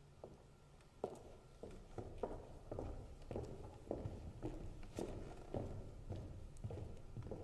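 Footsteps thud across a wooden stage.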